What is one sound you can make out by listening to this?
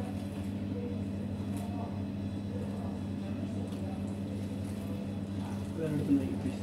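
Water trickles from a jug into flour.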